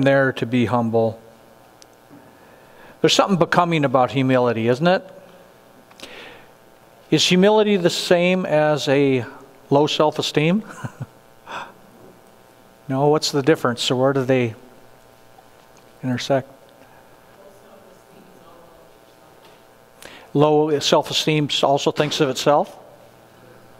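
A middle-aged man speaks calmly to a group in a large room, with pauses between phrases.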